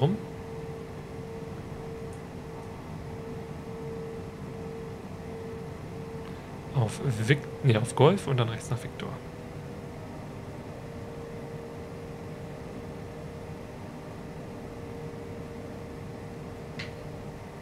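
A jet engine hums steadily.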